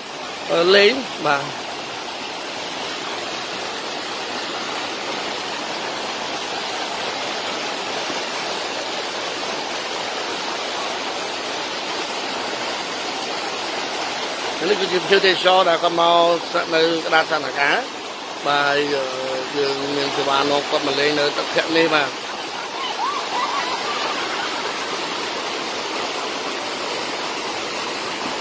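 Water rushes and splashes steadily over rocks.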